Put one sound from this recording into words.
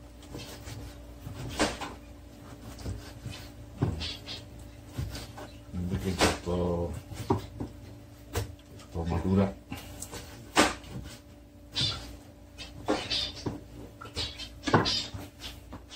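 A knife taps on a cutting board.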